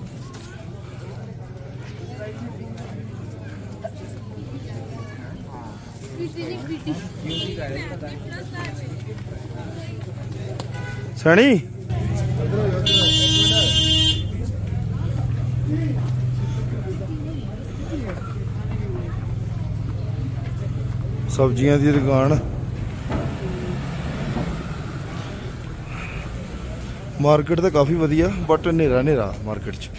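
A crowd of people chatters around outdoors.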